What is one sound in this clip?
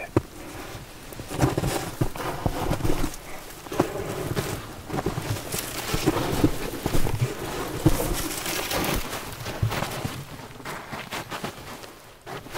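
Footsteps crunch through snow and dry grass.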